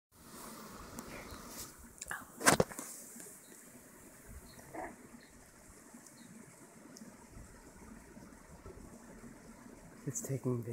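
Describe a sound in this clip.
Wind blows softly across open ground.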